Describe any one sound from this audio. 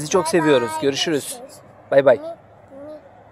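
A young girl speaks close by, with animation.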